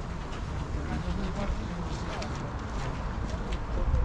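People talk in the distance outdoors.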